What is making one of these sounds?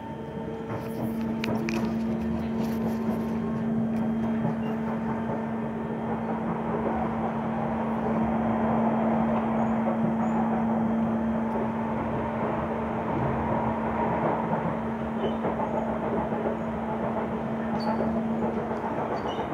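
A train's motor hums with a steady drone, then stops.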